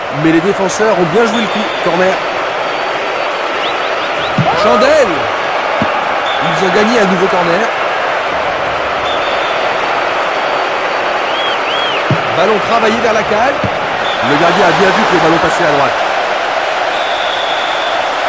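A large stadium crowd roars steadily throughout.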